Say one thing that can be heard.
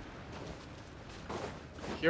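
Light footsteps patter quickly on soft ground.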